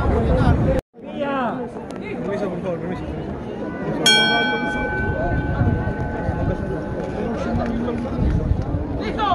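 A crowd of men murmurs and talks nearby outdoors.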